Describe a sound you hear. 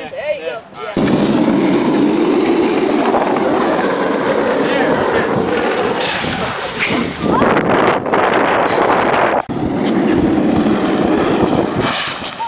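A cardboard box scrapes across asphalt.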